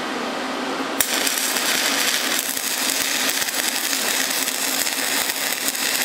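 A welding arc crackles and sizzles steadily.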